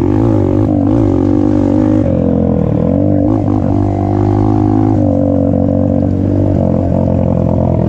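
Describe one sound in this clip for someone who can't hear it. Tyres rumble over a bumpy dirt trail.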